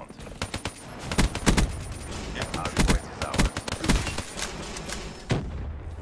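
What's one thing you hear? Gunshots from a game rifle fire in quick bursts.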